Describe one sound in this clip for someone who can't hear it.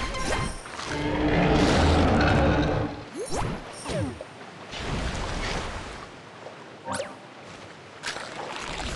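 Water splashes as a game shark leaps out of the sea.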